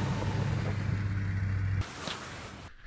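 Snowmobile engines drone steadily outdoors.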